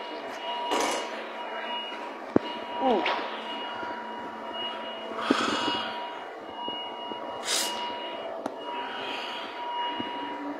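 Fabric rustles against a phone microphone.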